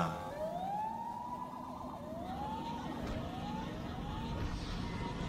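A siren whoops, rising in pitch again and again.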